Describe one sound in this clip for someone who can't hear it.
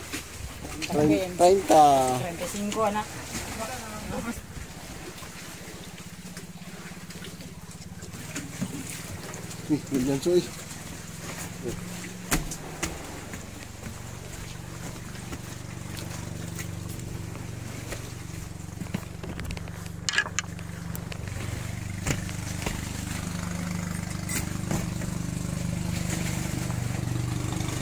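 A boat engine hums low and steady.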